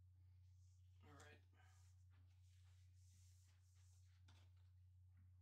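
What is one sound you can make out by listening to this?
A sheet of paper rustles as it slides across a table.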